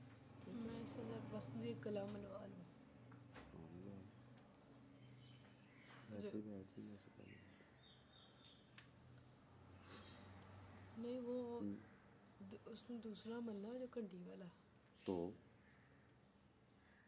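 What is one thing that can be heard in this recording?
Hands rub and knead bare skin softly.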